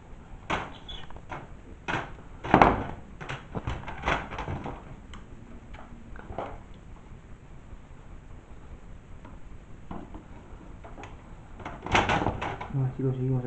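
A thin metal monitor frame clatters and knocks as it is handled on a table.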